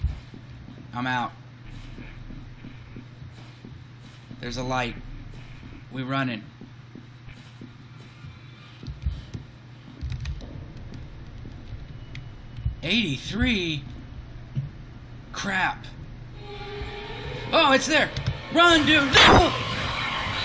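A middle-aged man speaks in short bursts close to a microphone.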